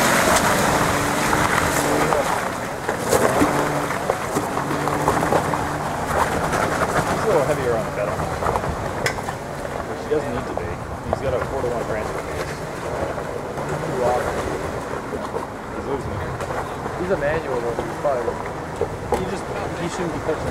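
Tyres crunch over rocks and dirt.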